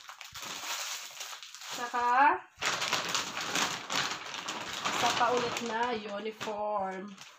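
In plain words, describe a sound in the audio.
Clothes and a plastic bag rustle as they are handled.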